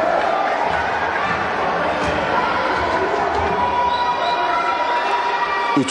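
A basketball bounces on the floor as a player dribbles.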